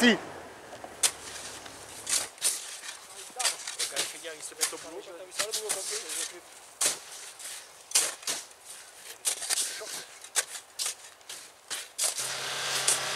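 Shovels dig and scrape into packed snow.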